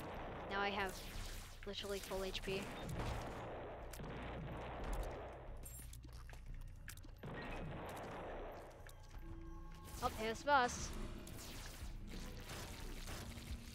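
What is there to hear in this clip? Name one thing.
Video game sound effects pop and squelch as tears are fired.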